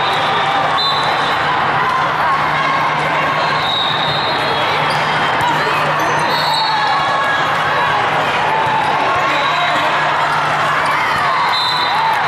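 A volleyball is struck with dull thumps.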